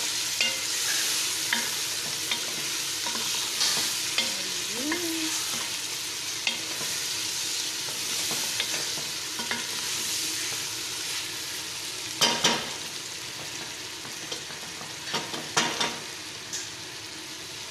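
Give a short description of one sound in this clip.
A wooden spoon stirs and scrapes chicken and vegetables in a metal pot.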